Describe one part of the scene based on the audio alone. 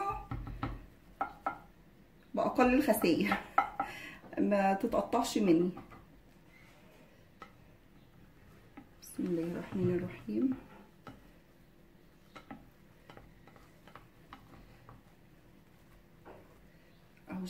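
A spatula scrapes and taps against a glass baking dish.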